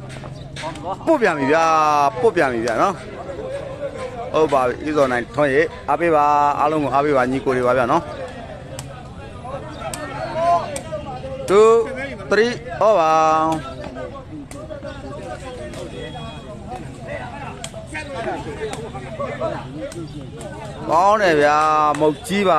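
A man's voice sings loudly through a loudspeaker, in long wavering phrases.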